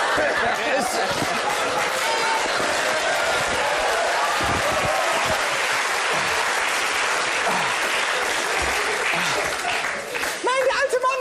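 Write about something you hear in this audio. An audience laughs and claps loudly in a large hall.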